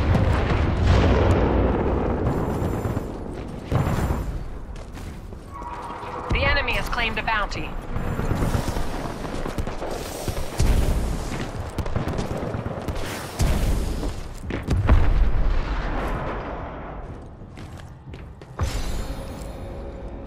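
Gunfire and explosions boom in a loud battle.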